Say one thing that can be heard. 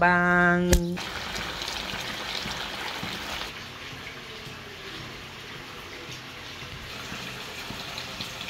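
Food simmers and bubbles softly in a pot.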